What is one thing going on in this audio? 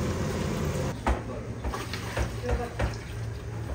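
Thick broth pours and splashes from a bucket into a pot.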